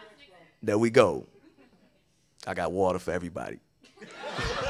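A man speaks into a microphone, pausing between phrases.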